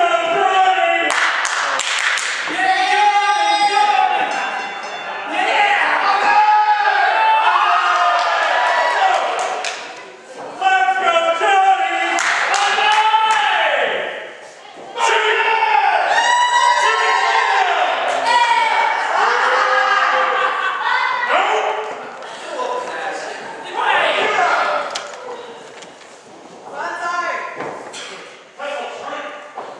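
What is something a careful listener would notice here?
A crowd of adults and children shouts and cheers, echoing in a large hall.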